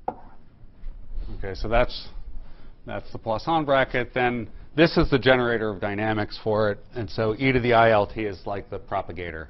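A middle-aged man lectures calmly, heard through a microphone.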